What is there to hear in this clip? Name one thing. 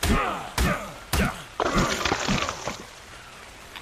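Heavy blows thud repeatedly into a carcass.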